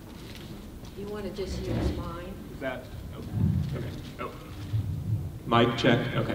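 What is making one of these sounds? An elderly woman speaks animatedly into a microphone.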